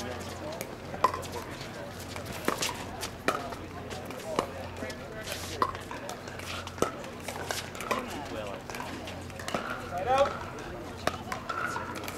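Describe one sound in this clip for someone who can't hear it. Paddles hit a plastic ball with sharp pops, back and forth.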